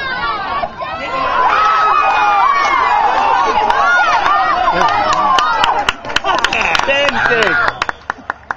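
A crowd of spectators cheers outdoors as a play unfolds.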